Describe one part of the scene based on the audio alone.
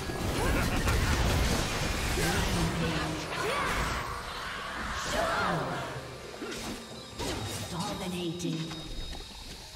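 Video game combat effects crackle and clash in quick bursts.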